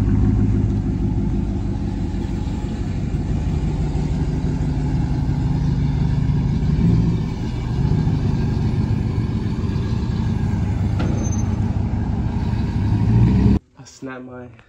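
A pickup truck's engine idles with a deep, throaty rumble.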